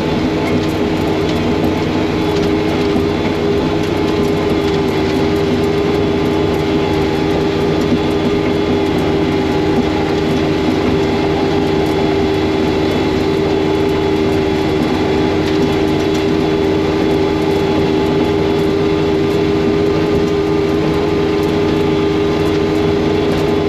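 A snowblower engine drones steadily close by.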